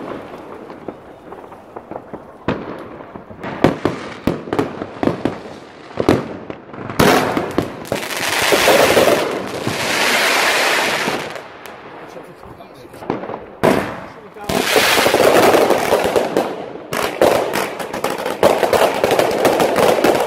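Fireworks bang and crackle loudly nearby.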